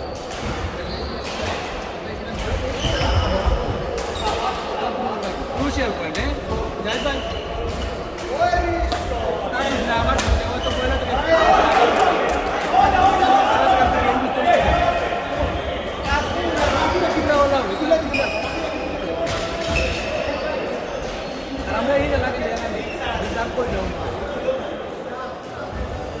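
Men talk and call out across an echoing hall.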